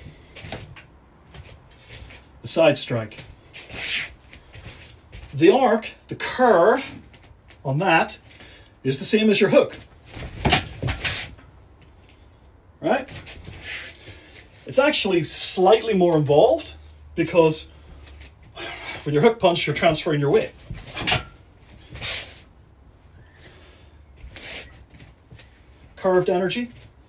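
Fists and kicks thump against a hanging jacket.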